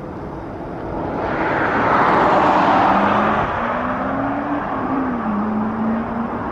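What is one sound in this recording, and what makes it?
An SUV drives past with a rush of tyres.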